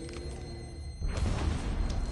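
A body thumps onto the mat.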